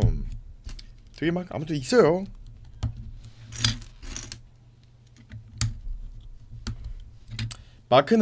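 Plastic toy bricks click and rattle as they are handled.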